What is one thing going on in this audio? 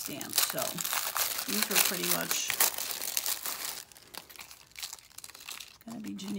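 A plastic sheet crinkles and rustles as it is handled.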